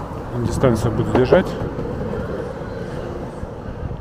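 Skateboard wheels roll and rumble on pavement nearby.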